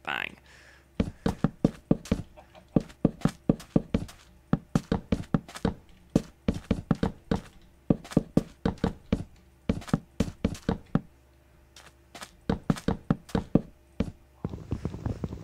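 Wooden blocks knock into place one after another in quick succession.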